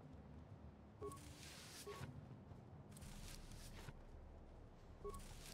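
Short electronic menu blips chime now and then.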